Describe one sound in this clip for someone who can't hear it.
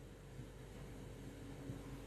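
Oil pours into a pan.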